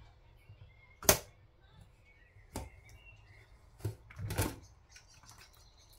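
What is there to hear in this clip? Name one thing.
A metal pot lid clicks and clanks as it is opened.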